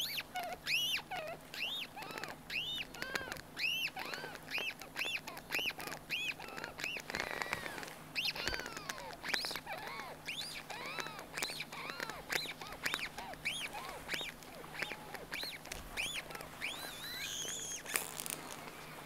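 Fingers rub a soft rubber bottle, making squeaky chirps close by.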